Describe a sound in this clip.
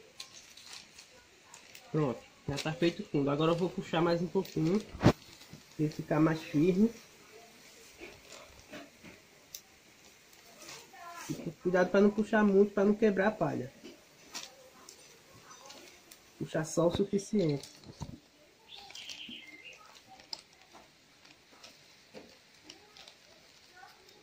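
Stiff palm leaves rustle and crackle as hands weave them.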